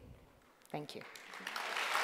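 A woman speaks into a microphone in a calm voice.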